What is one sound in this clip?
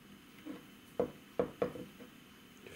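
A stone knocks against a hard surface a few times.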